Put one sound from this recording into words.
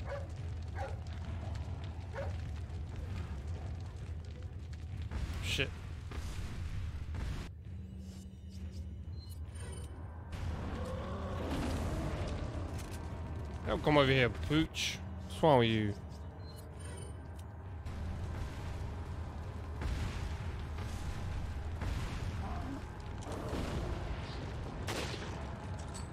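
A fire crackles steadily.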